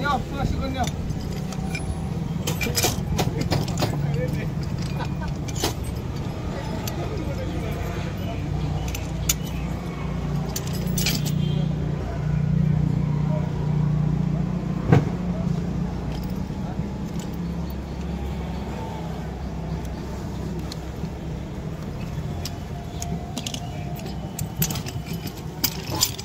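Metal fittings clink and clank as they are handled and fitted together.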